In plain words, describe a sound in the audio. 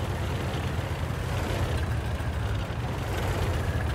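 Water splashes as a tank drives through a shallow stream.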